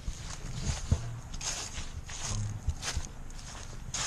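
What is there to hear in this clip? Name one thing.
A car drives slowly past on a gravel road.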